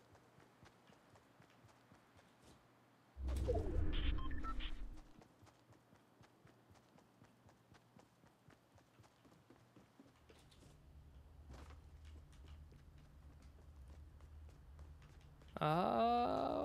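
Footsteps tap quickly and steadily.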